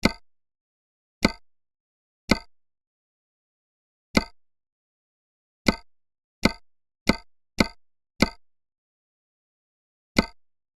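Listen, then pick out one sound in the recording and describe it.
Short menu clicks sound every second or so.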